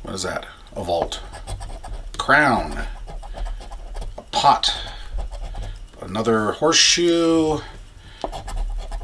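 A coin scrapes across a scratch-off ticket.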